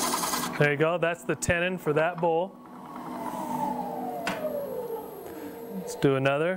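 A lathe motor whirs and slowly winds down.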